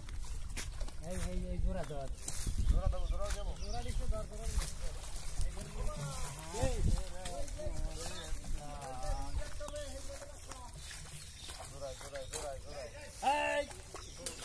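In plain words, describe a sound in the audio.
Boys call out to each other outdoors.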